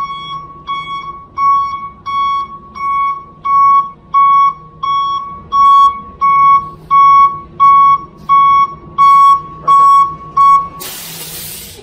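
A truck's reversing alarm beeps steadily and loudly.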